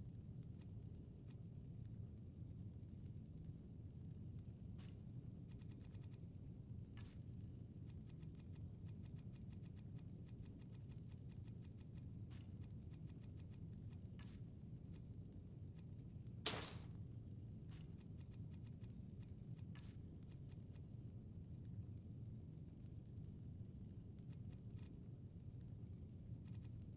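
Soft menu clicks tick quickly as items are scrolled through.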